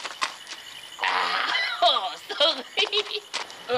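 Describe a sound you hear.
A man laughs loudly and wildly.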